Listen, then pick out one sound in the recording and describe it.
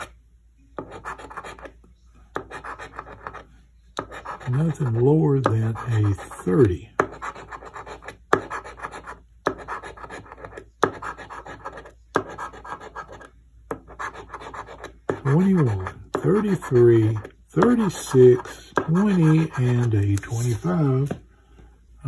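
A coin scratches rapidly across a scratch card in short bursts.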